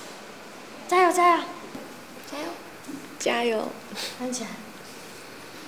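A teenage girl speaks cheerfully and giggles close by.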